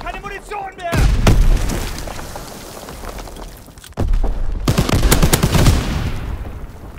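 A machine gun fires in loud bursts.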